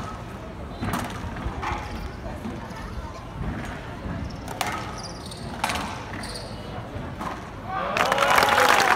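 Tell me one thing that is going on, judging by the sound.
A squash ball smacks sharply against the walls in a fast rally.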